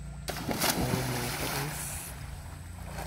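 Water splashes loudly as someone jumps into a pool.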